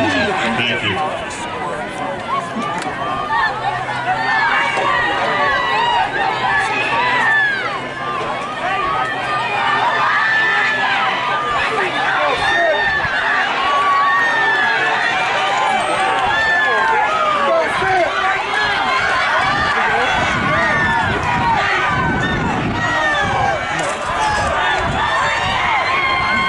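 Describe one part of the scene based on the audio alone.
An outdoor crowd of spectators cheers and shouts.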